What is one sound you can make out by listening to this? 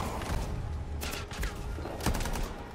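Gunfire and blasts crackle in a fight.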